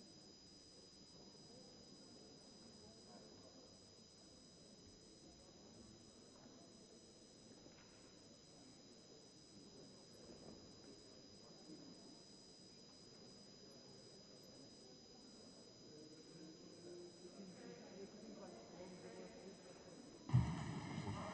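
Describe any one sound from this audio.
A low murmur of many people fills a large hall.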